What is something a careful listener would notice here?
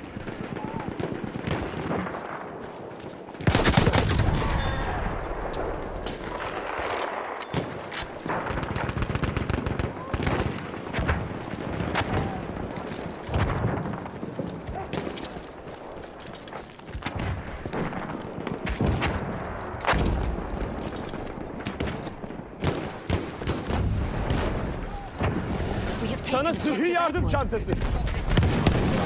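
Gunshots and explosions crack and boom throughout a battle.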